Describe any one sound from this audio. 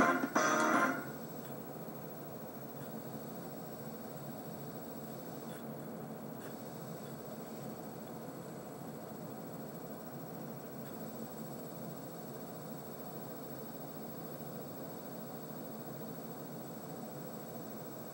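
An old television gives off a faint, steady high whine.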